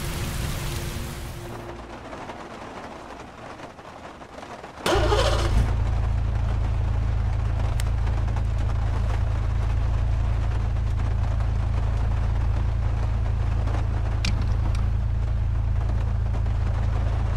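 Rain patters on a car windshield.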